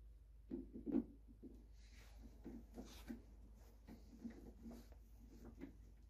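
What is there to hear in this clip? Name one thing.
Metal parts clunk and knock softly as they are handled.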